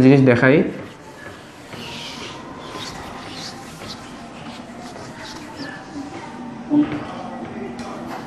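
A cloth rubs and squeaks across a whiteboard.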